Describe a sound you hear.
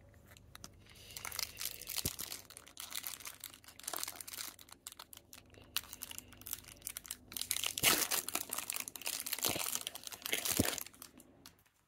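A foil wrapper crinkles and rustles as it is handled.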